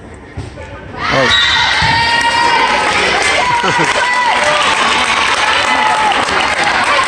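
A crowd of men and women cheers and shouts loudly.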